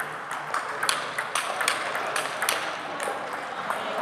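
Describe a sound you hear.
A table tennis ball clicks quickly back and forth off paddles and a table in a large echoing hall.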